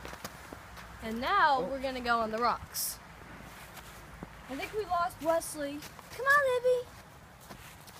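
A young girl talks excitedly close by.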